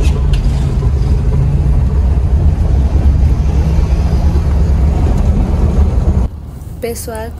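A car engine rumbles steadily from inside a moving car.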